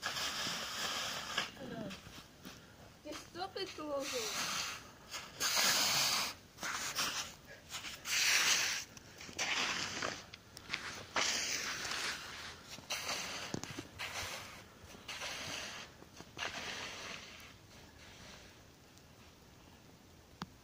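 Footsteps crunch on snowy ground nearby.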